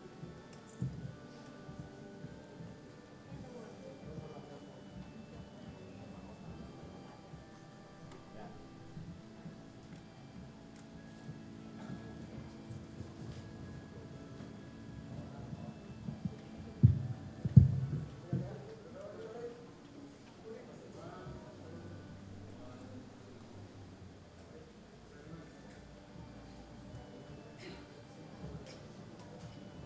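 A crowd murmurs softly in a hall.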